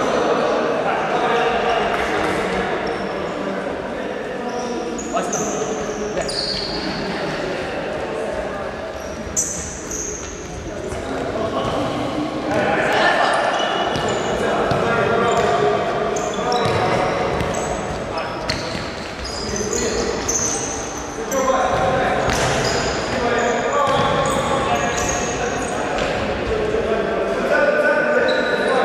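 Shoes squeak sharply on a hard indoor floor.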